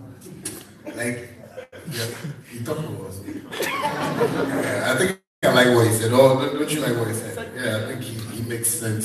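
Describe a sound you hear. A young man speaks with animation through a microphone.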